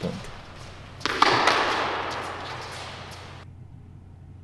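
A tennis racket strikes a ball with a sharp pop that echoes in a large hall.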